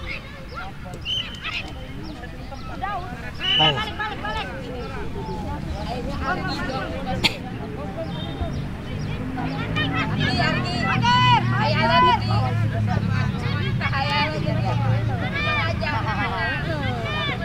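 Young boys shout and call out outdoors.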